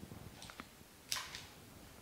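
Scissors snip a stem.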